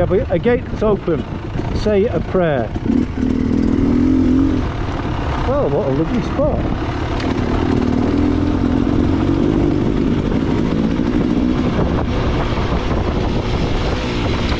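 A dirt bike engine revs and rumbles up close.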